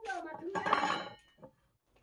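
A metal disc clinks as it is set down on a wooden bench.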